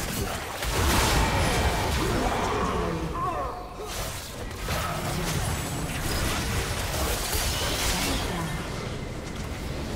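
Game spell effects whoosh and crackle in a busy fight.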